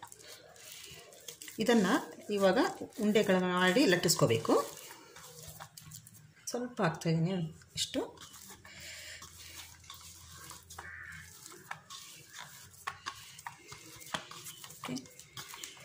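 Hands knead soft dough in a bowl with quiet squelching.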